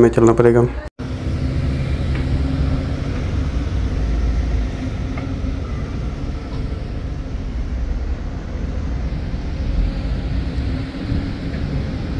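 Traffic rumbles along a city street outdoors.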